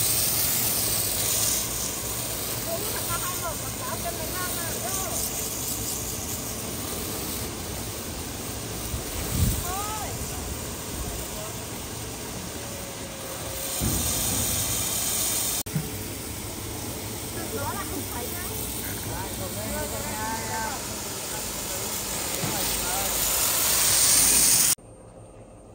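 A pressure washer sprays water in a steady, loud hiss.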